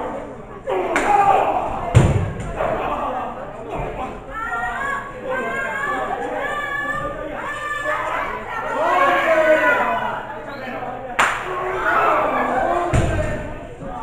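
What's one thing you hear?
Wrestlers' bodies slam onto the ring mat with heavy thuds.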